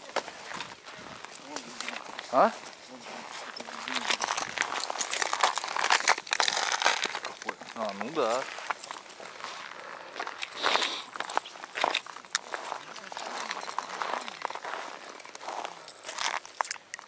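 Boots crunch on packed snow.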